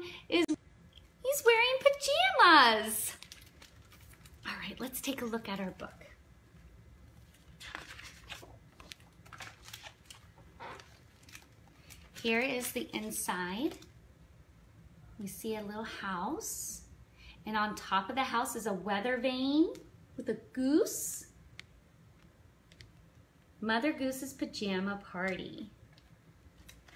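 A woman talks warmly and close by, reading aloud.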